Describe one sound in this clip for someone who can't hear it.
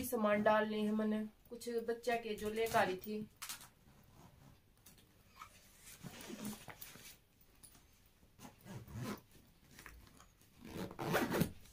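A zipper rasps on a backpack.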